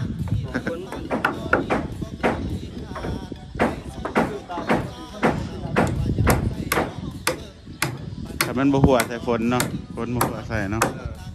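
A hammer knocks repeatedly on wood.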